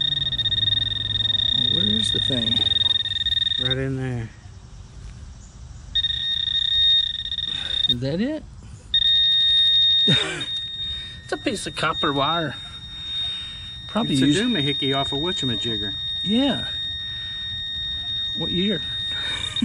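A metal detector hums a steady high tone that cuts out now and then.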